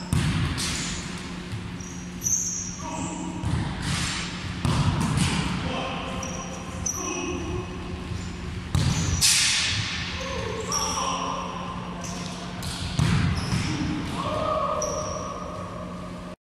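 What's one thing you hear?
Balls thud and bounce on a wooden floor in a large echoing hall.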